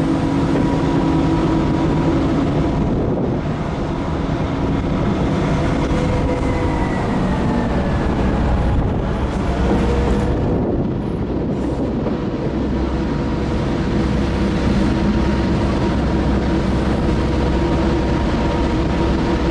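A locomotive engine drones, heard from inside the cab.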